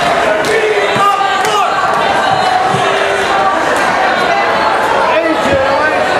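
A crowd cheers and shouts along.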